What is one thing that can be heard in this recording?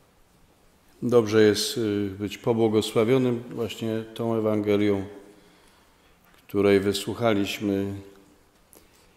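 A middle-aged man reads out slowly through a microphone.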